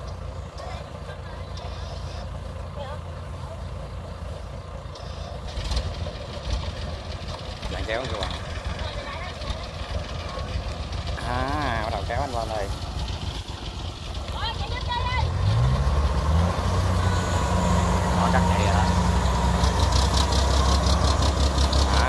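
A combine harvester's diesel engine runs.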